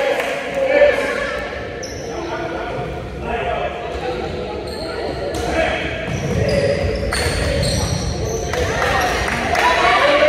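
Voices of children and adults echo around a large gym.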